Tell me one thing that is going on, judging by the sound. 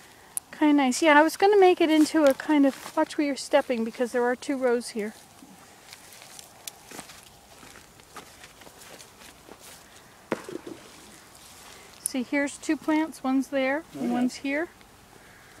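Footsteps tread softly on grass and soil.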